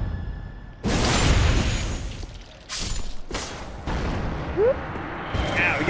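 Flames roar and whoosh in a burst of fire.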